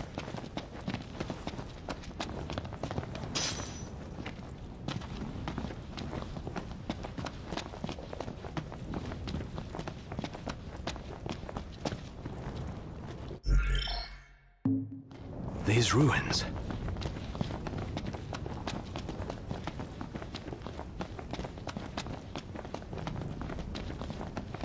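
Footsteps run quickly over hard stone.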